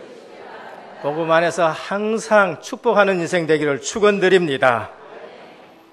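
A middle-aged man speaks calmly and steadily into a microphone in a large echoing hall.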